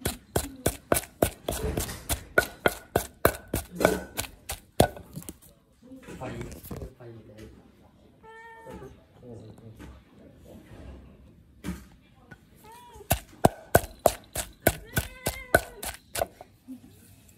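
A wooden pestle pounds in a mortar with quick, rhythmic thuds.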